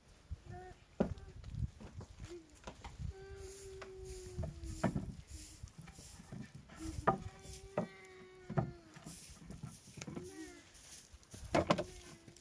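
Wooden beams knock against each other.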